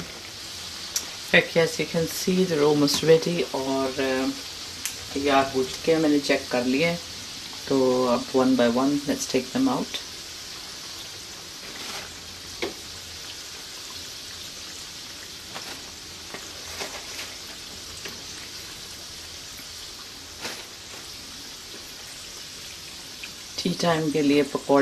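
Hot oil sizzles and bubbles steadily in a pan.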